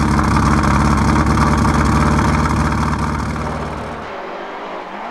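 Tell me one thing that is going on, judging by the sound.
A rally car engine roars loudly up close.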